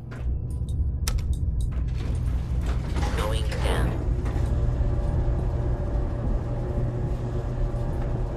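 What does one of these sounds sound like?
An elevator hums low as it descends.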